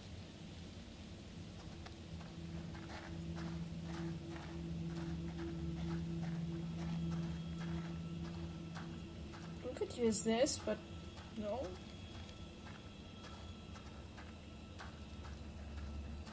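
Footsteps tread slowly on the ground.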